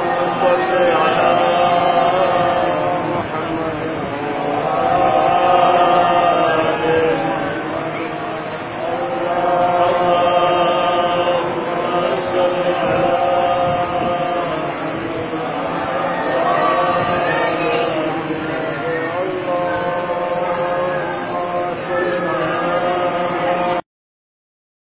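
A young boy recites in a melodic chant through a microphone and loudspeakers, echoing in a large hall.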